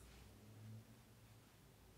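A brush lightly strokes paper.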